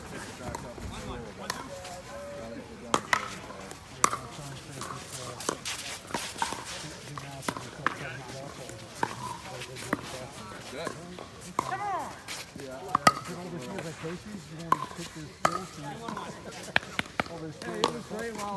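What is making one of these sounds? Men call out and talk on the court outdoors.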